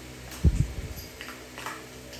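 A small dog scuffles and paws at a toy on a hard floor.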